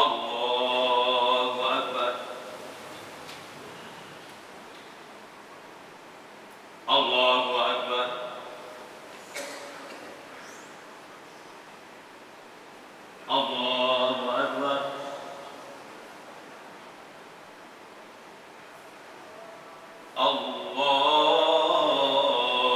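A man chants in a loud, drawn-out voice through a microphone, echoing in a large hall.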